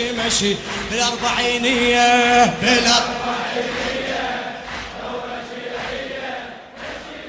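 A huge crowd chants loudly in unison outdoors.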